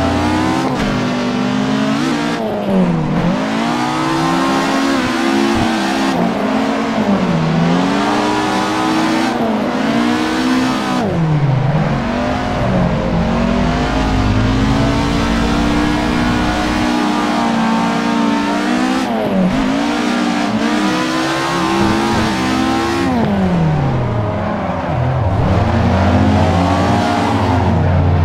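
A car engine revs hard, its pitch rising and falling sharply with each gear change.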